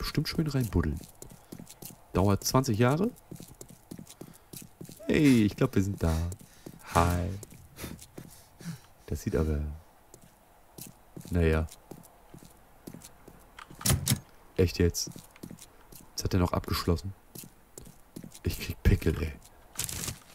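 Footsteps tread steadily over the ground.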